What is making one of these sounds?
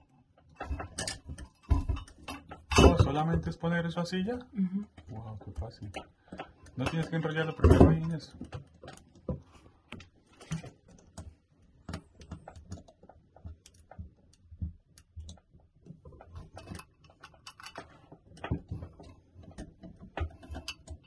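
Small plastic and metal parts click and tap as they are handled.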